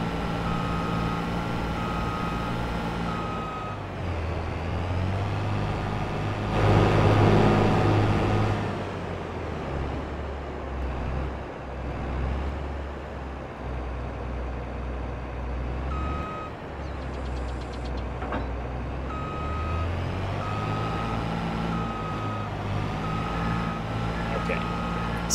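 A warning beep sounds in short repeated tones.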